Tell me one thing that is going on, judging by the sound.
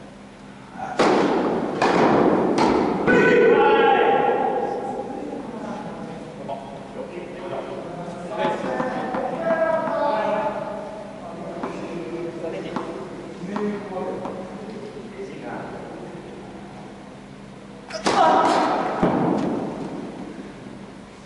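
Tennis balls are struck with rackets, with sharp pops echoing in a large hall.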